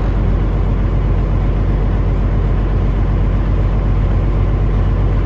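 A truck's diesel engine rumbles loudly and steadily at low speed.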